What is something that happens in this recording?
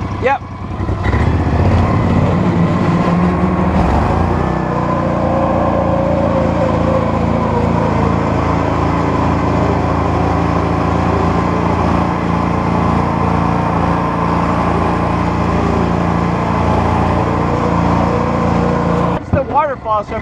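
A small off-road vehicle's engine drones steadily as it drives.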